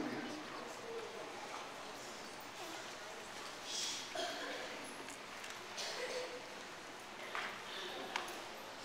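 A choir of young voices sings together, heard from a distance.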